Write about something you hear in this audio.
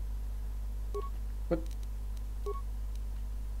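Menu interface sounds blip and click briefly.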